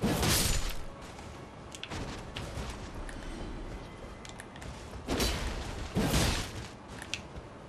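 A sword slashes through the air with heavy whooshes.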